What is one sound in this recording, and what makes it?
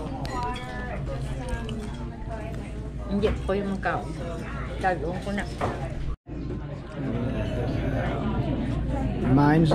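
A middle-aged woman talks calmly, close up.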